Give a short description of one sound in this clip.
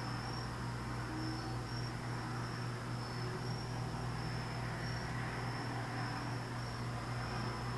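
A brush swishes softly on paper.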